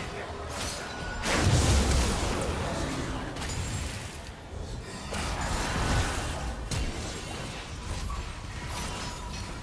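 Magic spells whoosh and explode in quick bursts during a fight.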